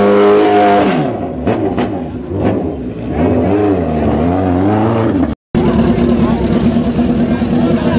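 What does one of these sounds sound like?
A motorcycle engine revs up and down in short bursts.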